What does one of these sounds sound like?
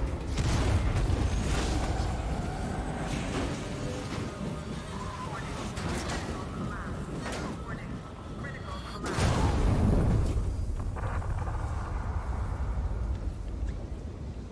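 Fire roars from a flamethrower.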